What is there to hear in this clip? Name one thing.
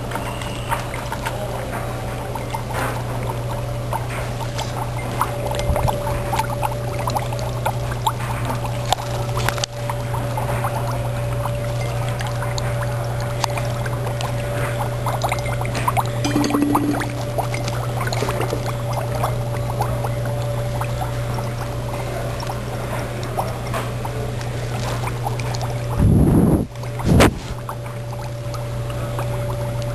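Foam fizzes and crackles softly in a glass.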